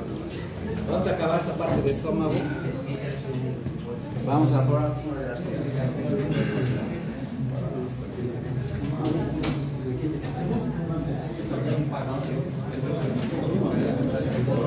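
A man speaks steadily in a room, as if lecturing.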